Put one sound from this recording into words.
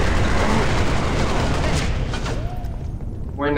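Rapid gunfire rattles and crackles.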